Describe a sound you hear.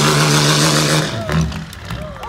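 A diesel truck engine roars loudly close by.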